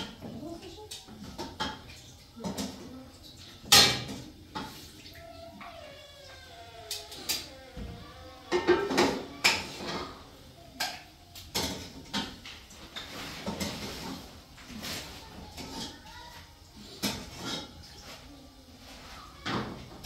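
Dishes and utensils clink and clatter close by.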